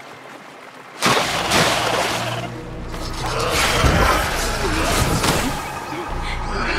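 Loud crashing blasts and bursts of energy erupt.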